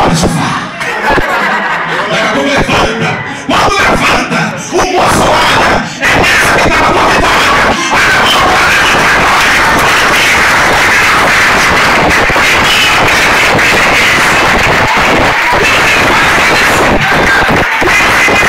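A man preaches loudly and with animation into a microphone, heard through loudspeakers in an echoing hall.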